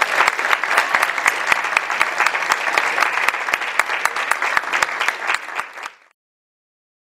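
An audience claps in rhythm.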